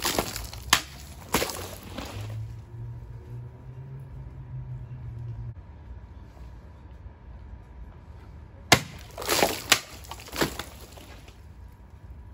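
Water splashes and sprays onto the ground.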